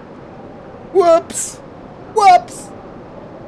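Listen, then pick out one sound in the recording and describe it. A man speaks briefly into a close microphone in short, animated exclamations.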